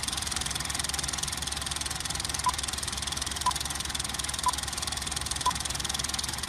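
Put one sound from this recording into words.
A film projector clatters with a rapid, steady ticking.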